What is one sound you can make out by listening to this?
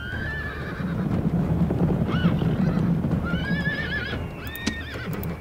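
Horses' hooves drum on the ground as cavalry moves.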